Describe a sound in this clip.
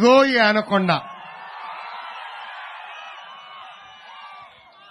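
A large crowd cheers and shouts in the distance.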